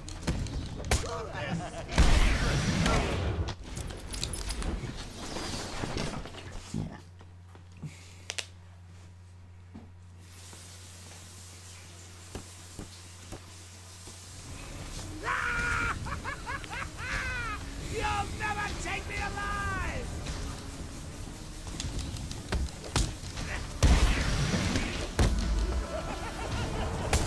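Punches and kicks thud in a fast brawl.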